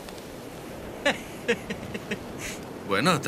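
A young man laughs softly.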